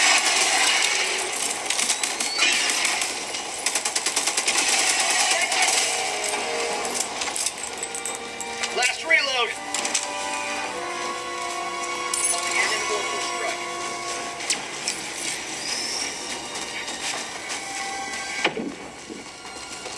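Rapid gunfire and blasts crackle from a small handheld speaker.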